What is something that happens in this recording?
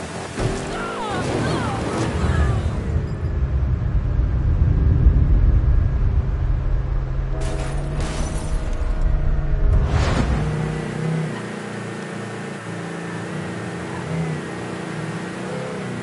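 A car engine roars and changes pitch as it speeds along.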